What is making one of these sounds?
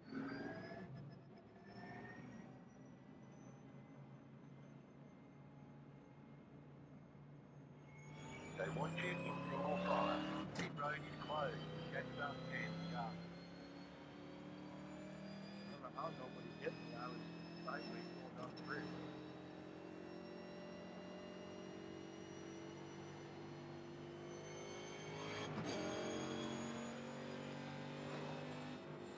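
A race car engine hums in low gear, then revs up and climbs steadily in pitch as the car speeds up.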